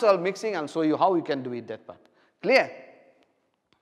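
A man speaks clearly and calmly into a close microphone.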